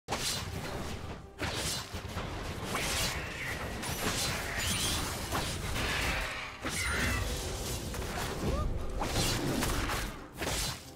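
Magical spell effects whoosh and crackle in a fast fight.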